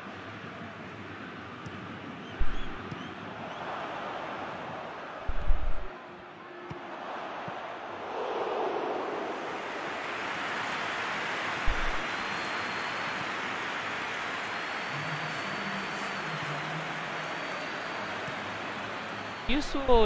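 A stadium crowd roars steadily, swelling at times.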